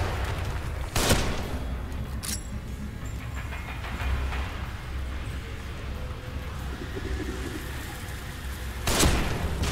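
A rifle fires with a sharp, loud crack.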